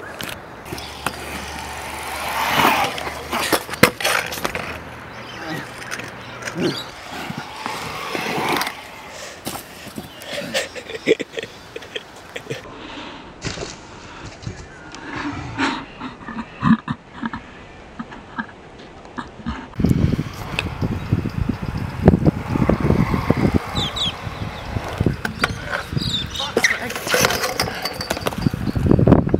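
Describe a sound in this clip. Scooter wheels roll and scrape over concrete.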